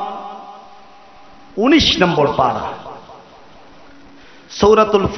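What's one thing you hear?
A man preaches loudly and with fervour into a microphone, in bursts with pauses.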